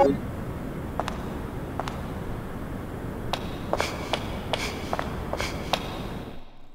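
Footsteps clatter on a hard floor.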